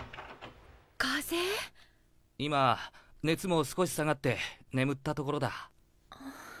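A woman speaks softly with concern, close by.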